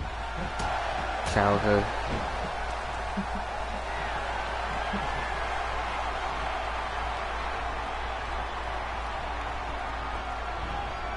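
A large crowd cheers and roars steadily in an echoing arena.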